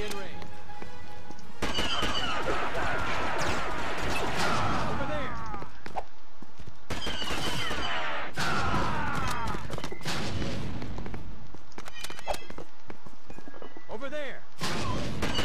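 Laser guns fire in quick bursts.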